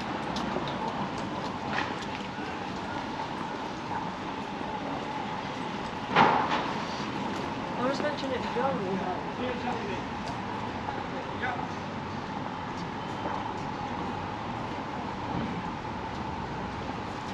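A steady hum of town street noise fills the air outdoors.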